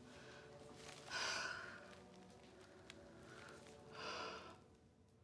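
A young woman sobs quietly close by.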